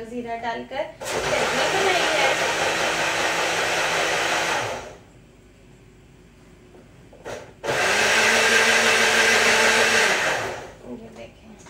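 A blender whirs loudly, then stops.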